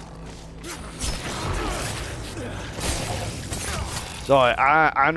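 A monster snarls and shrieks up close.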